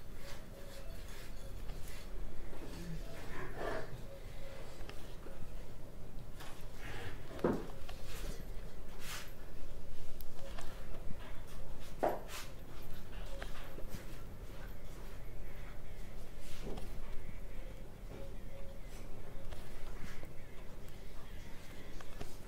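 Stiff fabric rustles and crinkles as hands handle it.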